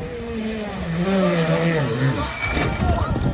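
A rally car engine revs hard as the car speeds past.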